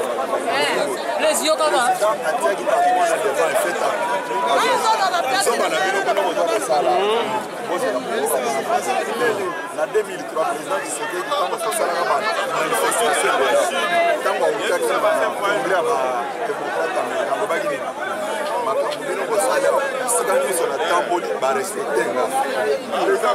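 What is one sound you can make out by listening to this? A crowd of people talk and murmur all around outdoors.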